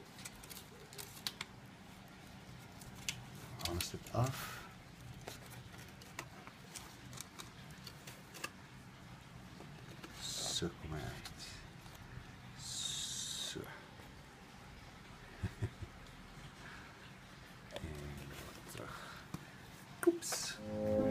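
Foil crinkles and rustles as hands handle it.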